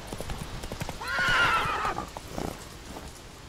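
A horse whinnies loudly.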